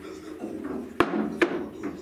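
A cue stick sharply strikes a billiard ball.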